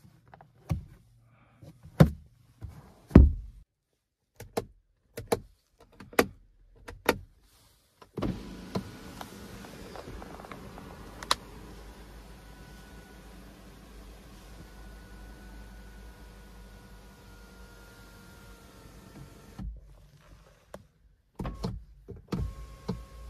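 Plastic covers and buttons click under a finger.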